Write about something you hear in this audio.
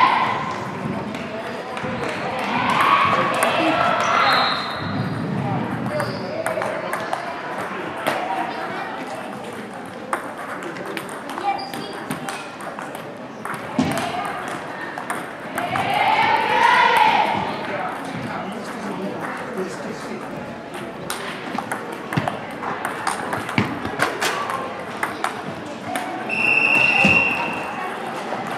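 Children chatter and shout in a large echoing hall.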